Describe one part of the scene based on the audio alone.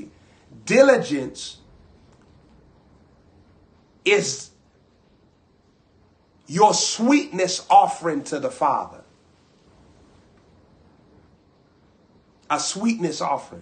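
A young man speaks close to a microphone with animation, in short bursts with pauses.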